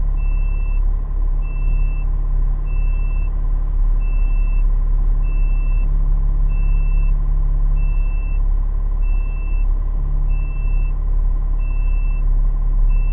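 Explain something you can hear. A turn indicator beeps at an even pace.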